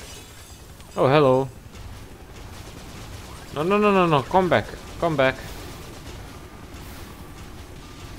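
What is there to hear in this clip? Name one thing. Gunfire from a game weapon bursts out.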